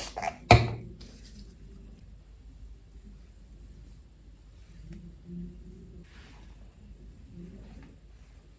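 Hands scrunch and rustle through damp hair.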